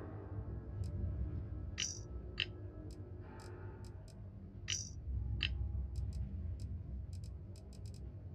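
Soft interface clicks and ticks sound as a menu is scrolled.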